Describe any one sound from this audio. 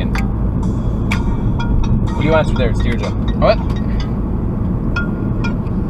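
A car engine hums with a steady low rumble from inside the car.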